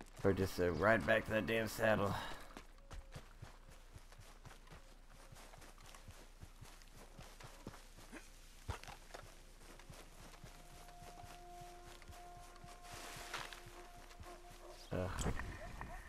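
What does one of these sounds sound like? Footsteps crunch quickly on gravel and grass.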